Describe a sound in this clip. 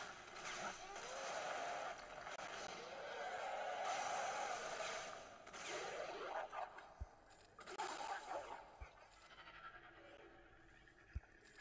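Blows and blasts of a fight thud and crackle.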